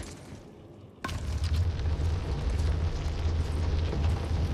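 A heavy wooden crate scrapes and rumbles as it is pushed along stone.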